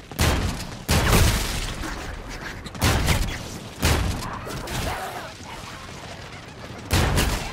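Guns fire in loud, booming bursts.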